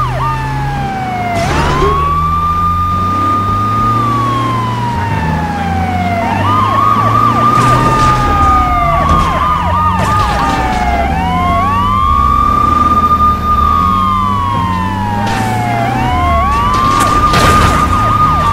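Vehicles crash and bang together.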